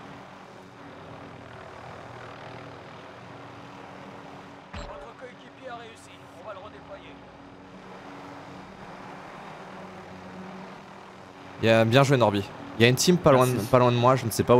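A helicopter's rotor drones steadily.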